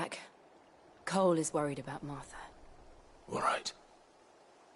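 A young man answers calmly.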